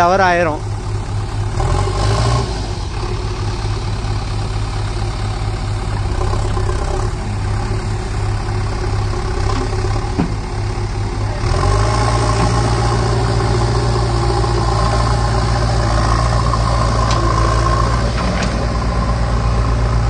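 A diesel engine rumbles steadily close by and revs up louder.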